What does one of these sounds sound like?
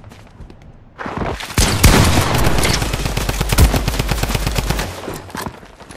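Rapid gunshots fire close by.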